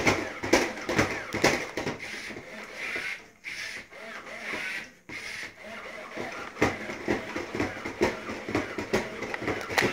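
A toy robot's motors whir as it walks.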